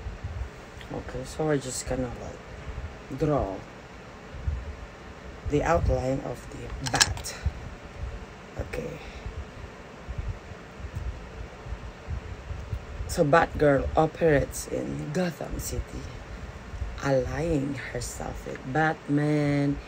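A woman talks close by, calmly and with expression.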